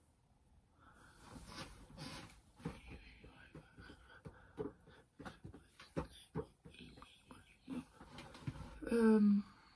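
A boy taps and knocks on a table.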